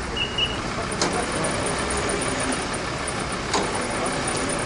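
Metal clanks as a car rolls onto a tow truck's bed.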